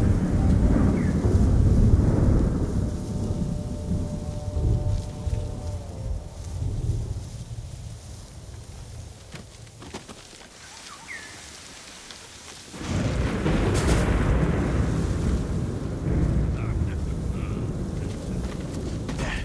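Strong wind gusts roar outdoors.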